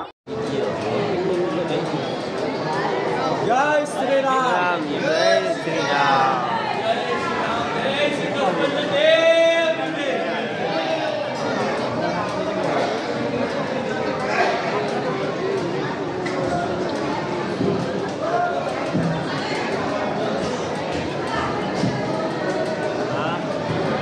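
A crowd of men and women talks and calls out in a large echoing hall.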